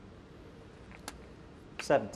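Snooker balls click against each other.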